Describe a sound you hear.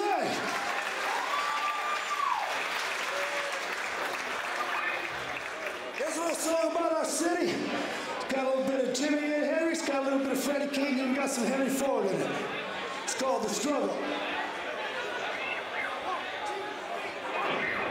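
A band plays electric guitars loudly.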